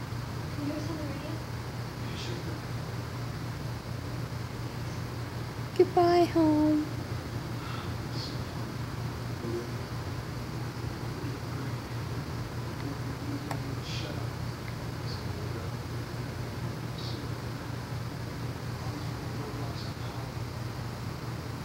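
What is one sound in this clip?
A television hums steadily.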